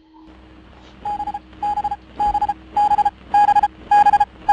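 A radio signal beeps in short, evenly spaced pulses that grow louder.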